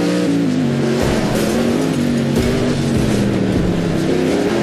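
Metal crunches and bangs in a violent car crash.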